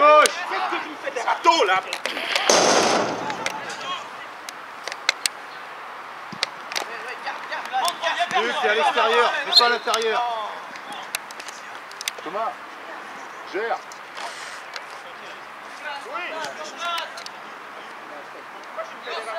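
Young players shout and call to each other outdoors across an open field.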